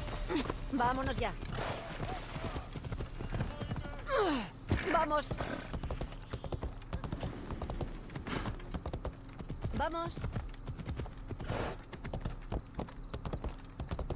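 A horse's hooves clatter quickly over wooden boards.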